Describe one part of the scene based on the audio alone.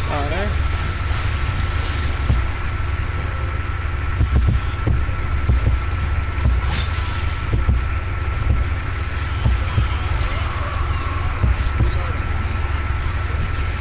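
A blade hacks into flesh with repeated wet thuds.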